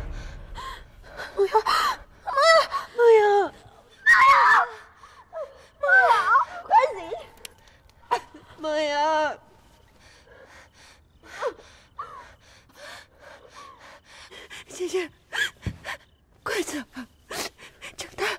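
A second young woman speaks tearfully, close by.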